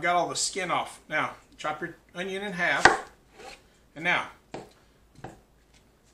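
A knife cuts through an onion and taps a cutting board.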